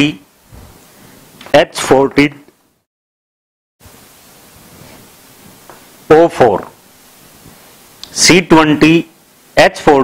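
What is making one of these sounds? A man speaks in a lecturing tone into a close microphone, in short bursts.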